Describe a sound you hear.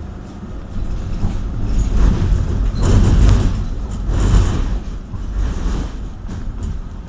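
A car passes by on the street.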